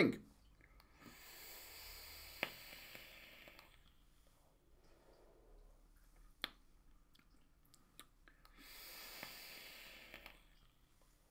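A man draws in hard through a vaporizer with a soft crackling hiss.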